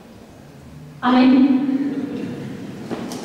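A choir sings a loud chord that rings out in a large echoing hall.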